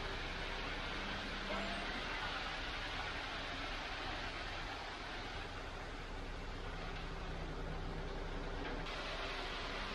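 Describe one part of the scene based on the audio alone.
Wet concrete pours and slides out of a chute.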